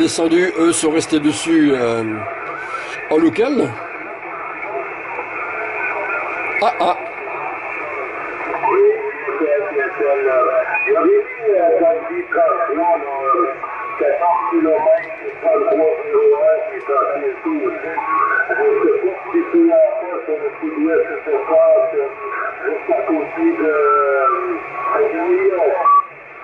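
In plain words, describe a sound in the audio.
A man's voice comes over a radio loudspeaker, thin and crackly.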